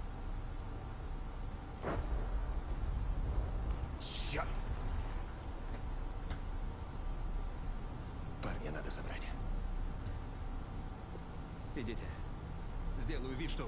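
A young man speaks quietly into a microphone.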